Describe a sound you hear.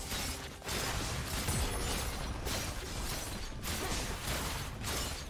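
Spell effects crackle and whoosh amid clashing fight sounds.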